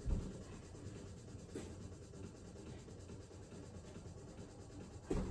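Hands and feet thump softly on a floor mat.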